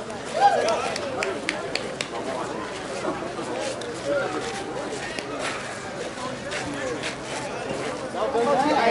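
Several men and women talk and call out across an open field outdoors.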